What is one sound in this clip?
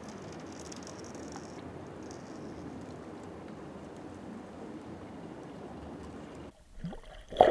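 Water laps gently.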